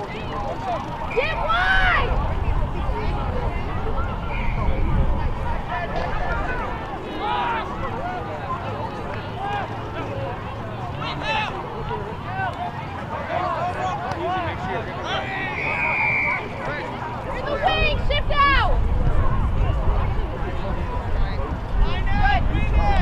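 Young women shout and call to each other across an open field.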